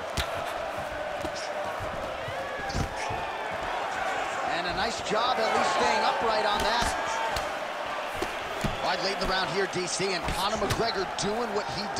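A crowd murmurs and cheers steadily in a large arena.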